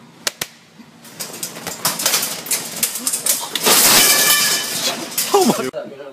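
Plastic balls and toys clatter as a shelf collapses.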